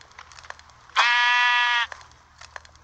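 A sheep cries out sharply when struck.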